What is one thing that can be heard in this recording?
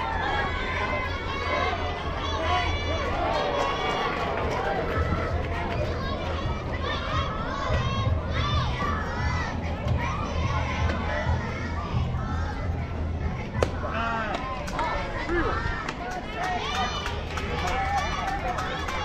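Young women call out and cheer from a distance outdoors.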